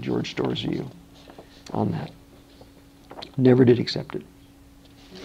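A middle-aged man reads aloud calmly, close by.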